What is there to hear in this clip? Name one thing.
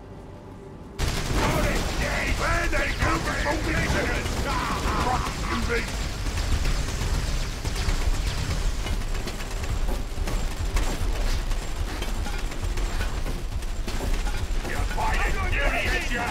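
Guns fire and blasts crackle in a noisy battle.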